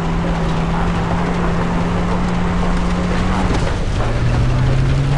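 Tyres rumble over a dirt road.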